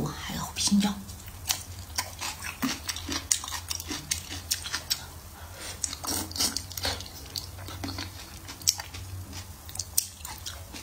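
A young woman chews and slurps food loudly, close to a microphone.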